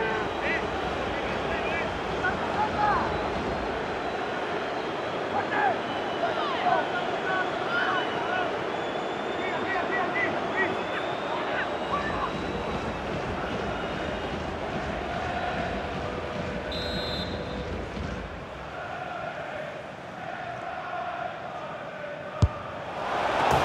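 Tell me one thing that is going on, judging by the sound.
A large stadium crowd cheers and chants steadily, with whistles rising above it.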